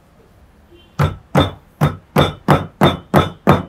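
A pestle pounds steadily in a stone mortar.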